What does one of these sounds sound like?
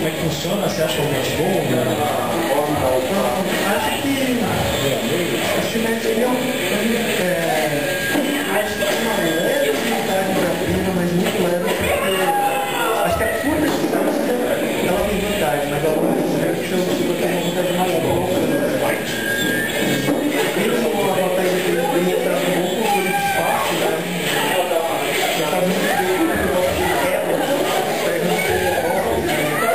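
Blades clash and blows land loudly in a fighting game heard through a speaker.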